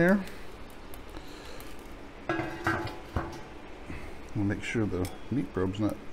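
A metal lid clanks onto a cooker.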